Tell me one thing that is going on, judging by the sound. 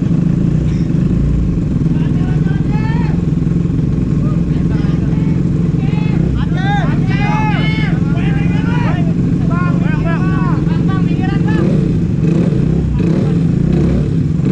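A motorcycle engine idles loudly close by.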